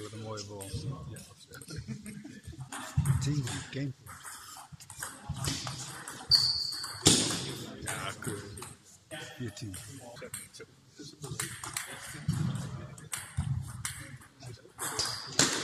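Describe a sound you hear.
A table tennis ball clicks back and forth across a table in a large echoing hall.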